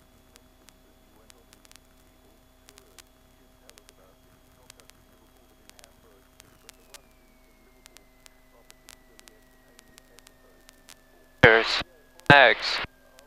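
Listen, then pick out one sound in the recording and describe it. A young man speaks quietly over a headset intercom.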